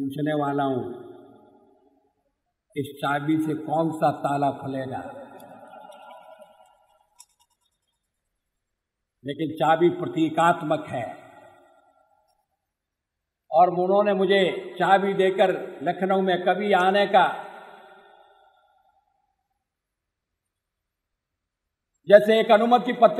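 An elderly man gives a speech into a microphone, speaking slowly in bursts with long pauses.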